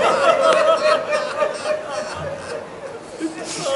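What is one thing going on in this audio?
A man weeps and sobs.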